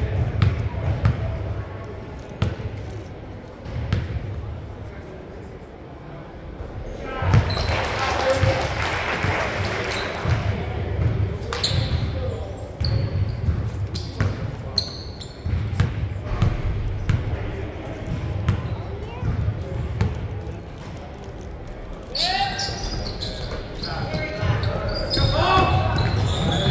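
A basketball bounces on a hard wooden floor in an echoing hall.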